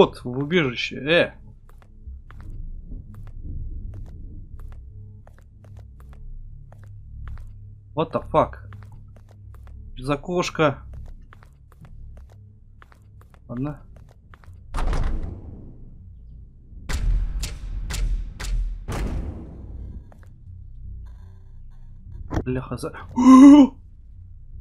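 A man speaks into a close microphone in short, animated bursts.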